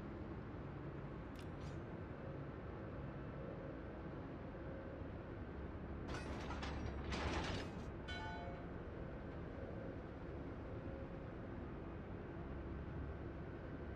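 Water churns along a moving ship's hull.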